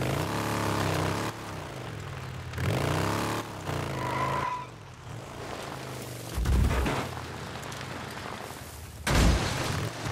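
A motorcycle engine rumbles and revs up and down.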